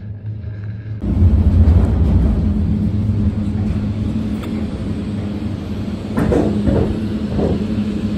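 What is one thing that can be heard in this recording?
Cable car machinery rumbles and clanks loudly nearby.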